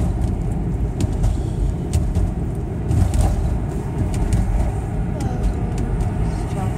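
A car engine and tyres rumble steadily on the road.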